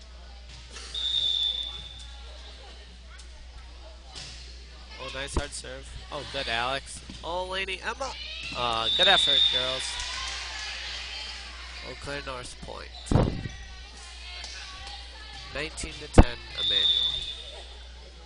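A referee's whistle blows short shrill blasts.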